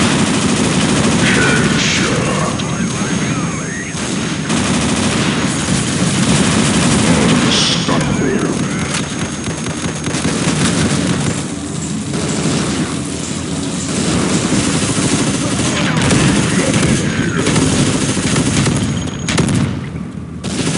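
Automatic gunfire rattles in rapid bursts in a video game.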